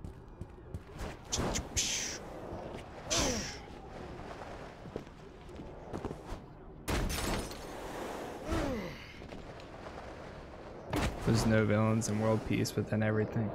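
Whooshing and thudding game sound effects play in bursts.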